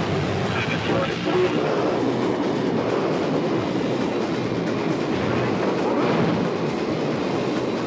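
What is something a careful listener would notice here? A video game jet engine roars.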